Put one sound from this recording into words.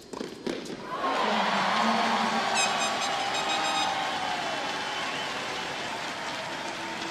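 A large crowd cheers and applauds loudly in a big arena.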